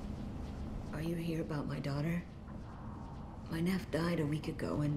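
A woman speaks anxiously, close by.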